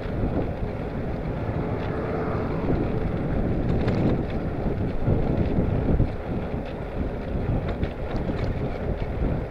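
Bicycle tyres hum on a tarmac road.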